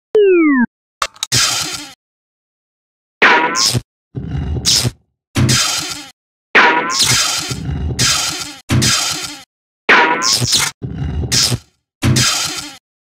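Electric sparks crackle and zap in short bursts.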